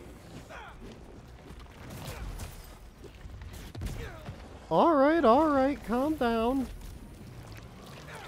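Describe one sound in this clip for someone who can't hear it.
Heavy tendrils thrash and whoosh.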